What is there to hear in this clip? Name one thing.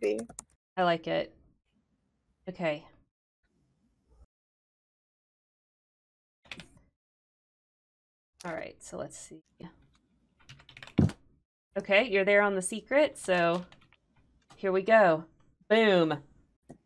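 A young woman speaks calmly and close to a microphone, in short bursts with pauses.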